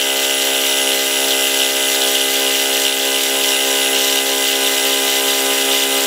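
A cutter grinds against metal.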